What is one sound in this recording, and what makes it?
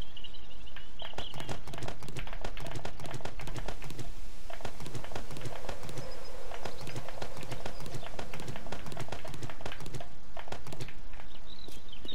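Quick clicks and soft pops sound as items are picked up one after another.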